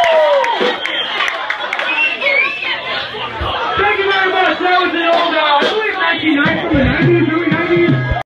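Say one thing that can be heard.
A lively crowd of men and women talk and shout over one another close by.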